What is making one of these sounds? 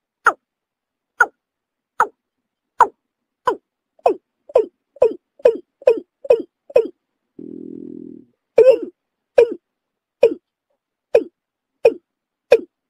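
A bird calls with short, sharp notes repeated again and again.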